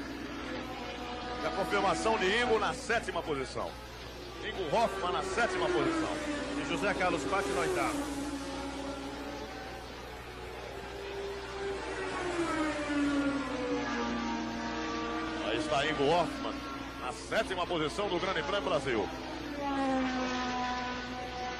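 A racing car engine roars and whines, its pitch rising and falling through gear changes.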